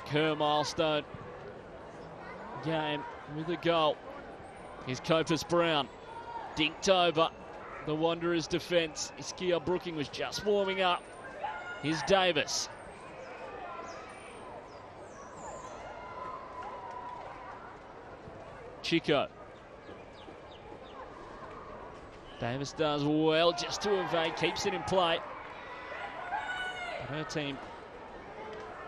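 A sparse crowd murmurs in an open stadium.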